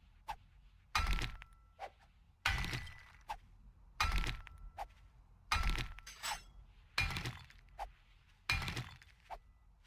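A pickaxe strikes stone with steady, evenly spaced blows.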